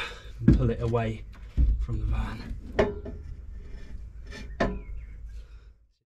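A metal driveshaft clunks as it is pulled free.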